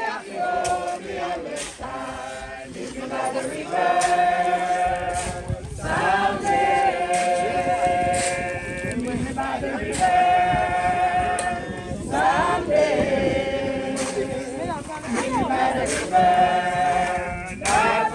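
A crowd of men and women sings a slow hymn together outdoors.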